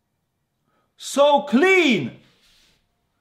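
A young man exclaims with excitement into a close microphone.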